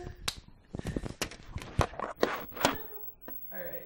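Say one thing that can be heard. A young woman sobs and gasps for breath close by.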